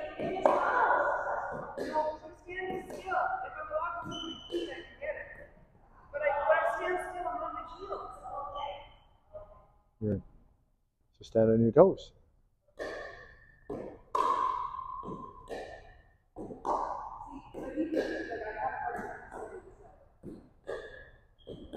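Paddles strike a plastic ball with sharp pops.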